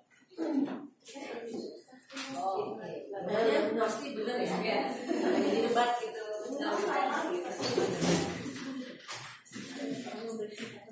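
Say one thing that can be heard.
Several women talk at once, their voices overlapping in a busy room.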